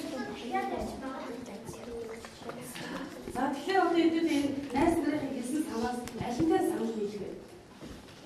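Children chatter and call out together.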